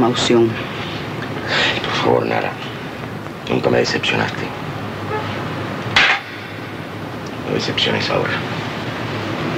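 A man speaks in a firm, measured voice close by.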